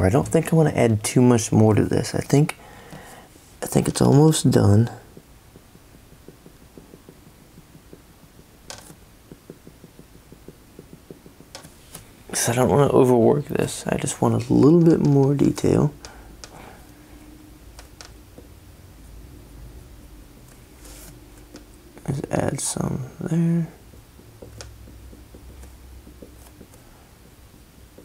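A felt-tip marker scratches softly across paper.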